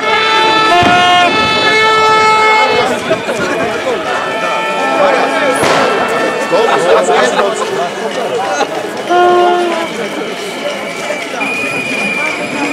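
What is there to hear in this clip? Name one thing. A large crowd of men and women chants and shouts outdoors.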